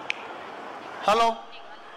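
A man speaks loudly through a microphone over loudspeakers.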